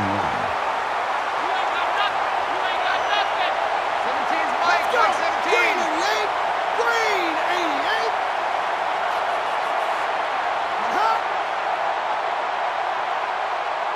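A large crowd roars steadily in a stadium.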